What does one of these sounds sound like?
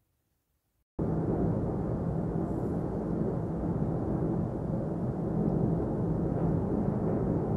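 Lava roars and rumbles steadily from an erupting volcano.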